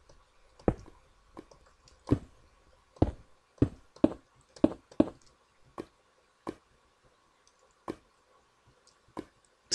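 Lava pops and crackles in short, sharp bursts.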